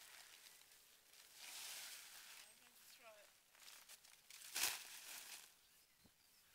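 A plastic sack rustles and crinkles loudly.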